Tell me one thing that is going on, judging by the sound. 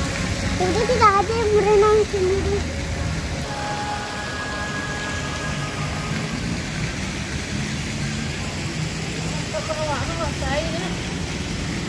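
A young girl speaks close by in short, lively bursts.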